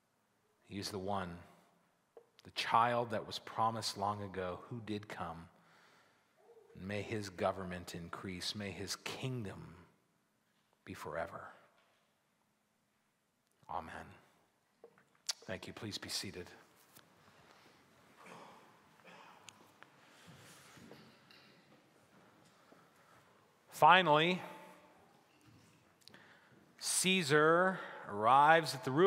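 A middle-aged man speaks with animation into a microphone, pausing often.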